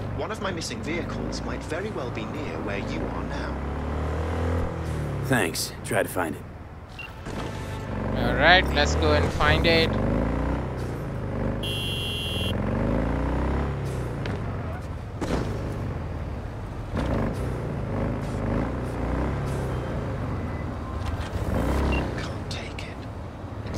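A motorcycle engine roars and revs up and down as the bike speeds along.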